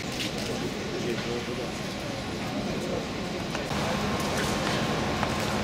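A crowd of adults murmurs and chats quietly outdoors.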